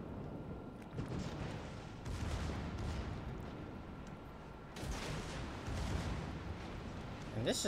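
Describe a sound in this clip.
Heavy guns boom in bursts.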